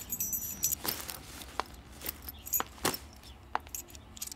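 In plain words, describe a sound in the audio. A jacket rustles as it is taken off.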